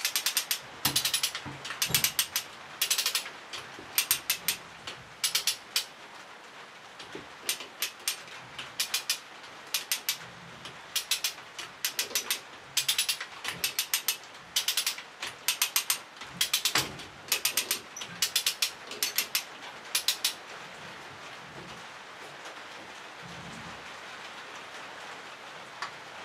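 An electric welder crackles and sputters.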